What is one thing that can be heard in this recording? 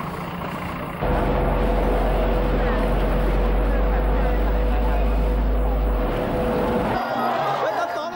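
A crowd chatters.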